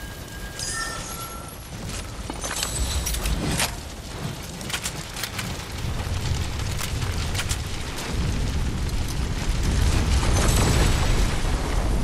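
Fire crackles and pops nearby.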